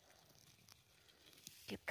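A hand picks mushrooms from mossy ground with a soft snap.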